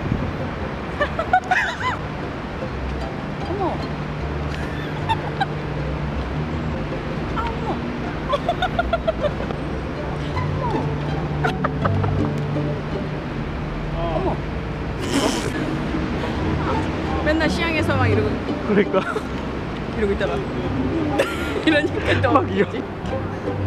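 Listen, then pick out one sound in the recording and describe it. A middle-aged woman laughs close by.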